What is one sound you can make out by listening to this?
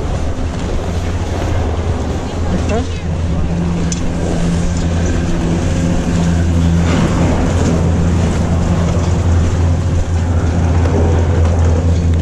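A snowboard scrapes over packed snow.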